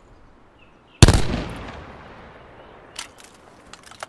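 A gunshot cracks and echoes away.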